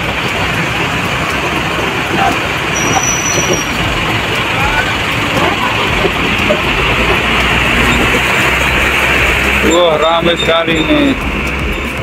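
Bus engines rumble steadily nearby.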